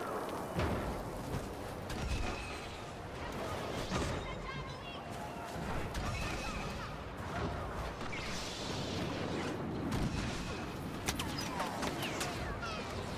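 A lightsaber hums and whooshes as it is swung.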